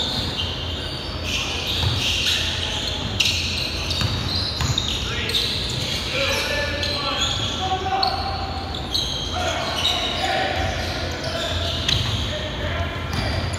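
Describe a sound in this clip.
Young players shout and call out to each other across the gym.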